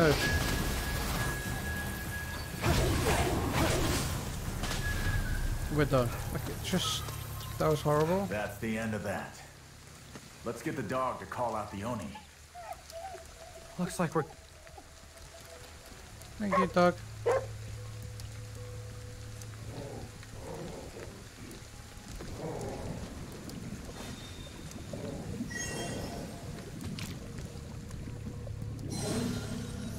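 Rain pours steadily outdoors.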